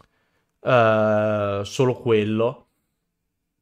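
A young man speaks loudly and drawn out into a close microphone.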